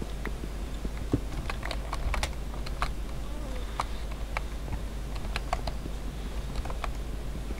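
A pickaxe repeatedly chips at stone blocks with sharp clicks.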